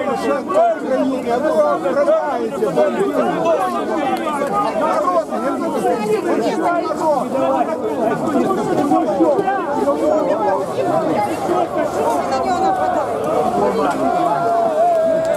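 A large crowd of men and women talks and murmurs all around, close by, outdoors.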